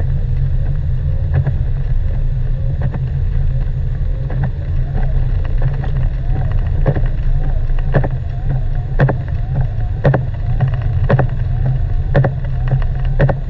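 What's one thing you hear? A car drives on a snowy road, with a low rumble heard from inside.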